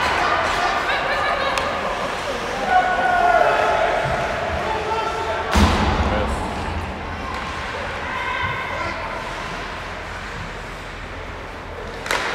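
A crowd of spectators cheers and shouts in a large echoing arena.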